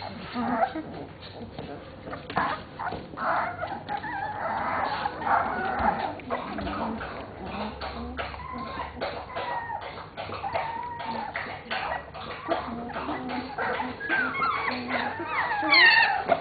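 Puppies scuffle and patter about on a soft floor.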